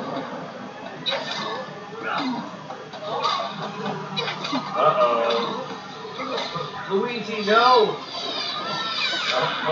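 Weapons clash and strike in a fast cartoon fight.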